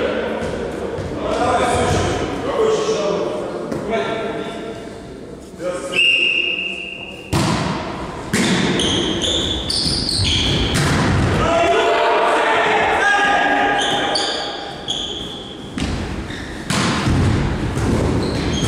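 Young men call out to each other across the hall.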